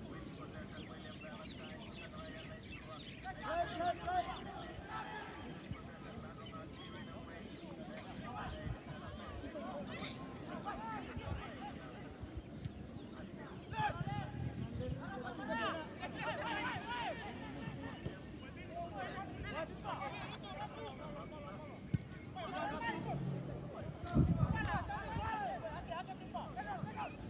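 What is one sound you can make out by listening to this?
Players shout to each other across a football pitch outdoors.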